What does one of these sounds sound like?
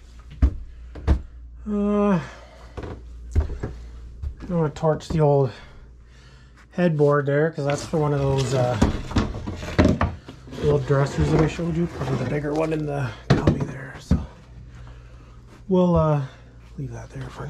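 Footsteps thud on creaking wooden stairs.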